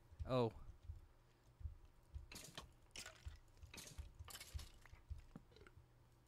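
A pickaxe knocks and digs at blocks in quick bursts.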